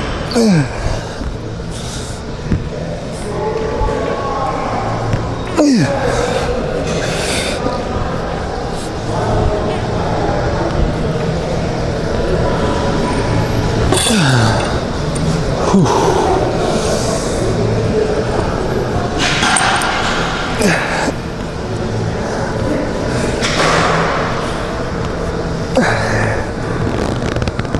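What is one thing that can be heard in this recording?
Metal weight plates clunk as a loaded bar is lowered and lifted.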